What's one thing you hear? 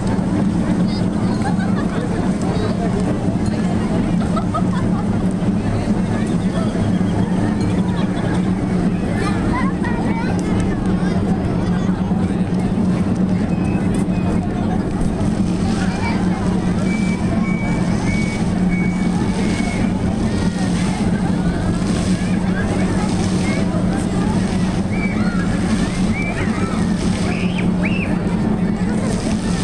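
A large crowd of people chatters and murmurs outdoors.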